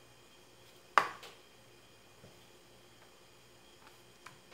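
Fingers tap and press small foam pieces onto paper.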